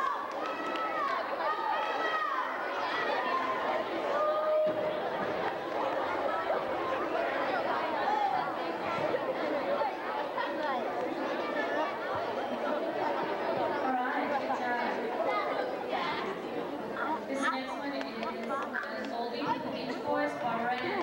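A large audience of children chatters loudly in an echoing hall.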